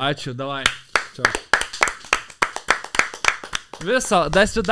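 Two men clap their hands rapidly.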